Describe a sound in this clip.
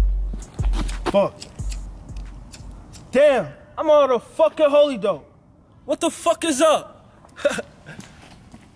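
A young man raps with energy, close by.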